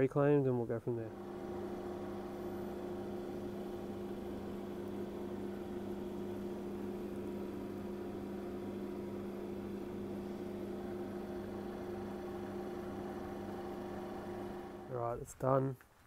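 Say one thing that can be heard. A vacuum pump hums steadily nearby.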